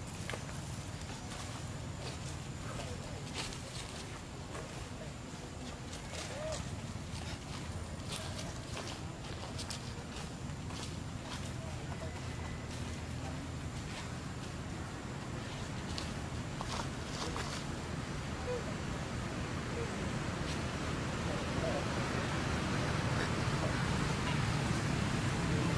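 Monkeys rustle leaves and branches as they climb.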